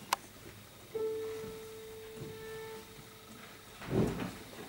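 A violin plays a long held note.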